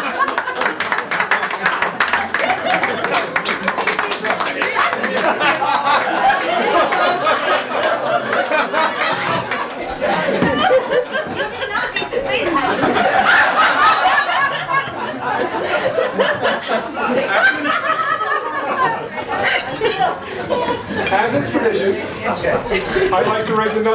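A crowd of guests murmurs and chatters in the background.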